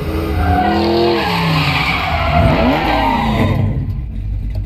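Tyres screech on pavement.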